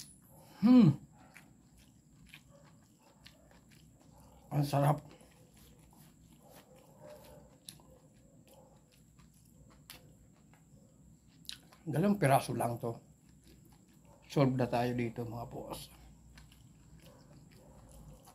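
A middle-aged man chews food with his mouth close by.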